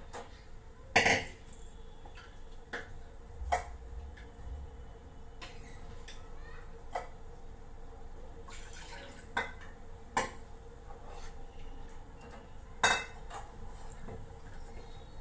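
Metal utensils clink and clatter against pots.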